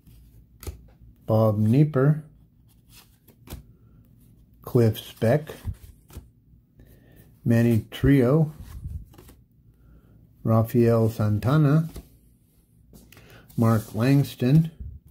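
Trading cards rustle and slide against each other as they are flipped through by hand.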